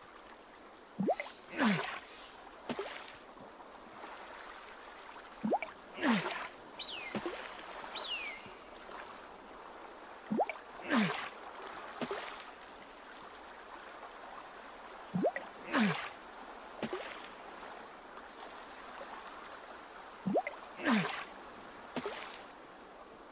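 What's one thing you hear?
Water splashes briefly every few seconds.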